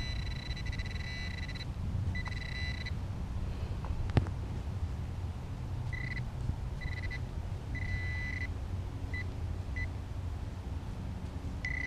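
A hand trowel scrapes and digs into soil.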